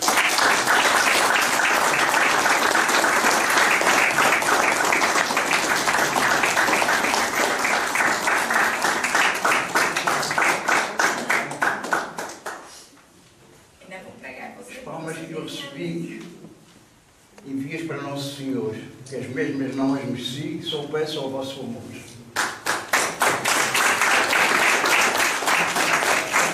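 People clap their hands in a steady applause.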